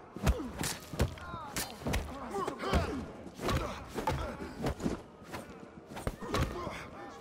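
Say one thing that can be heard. Heavy punches land with dull thuds in quick succession.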